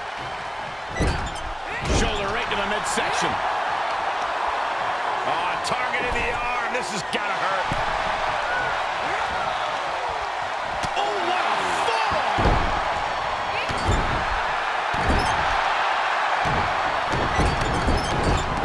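Heavy bodies thud and slam onto a wrestling ring mat.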